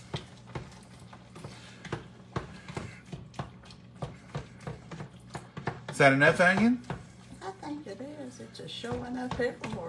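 Ground meat sizzles in a hot pot.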